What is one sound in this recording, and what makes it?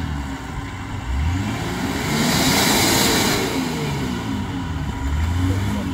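Mud squelches and splashes under spinning tyres.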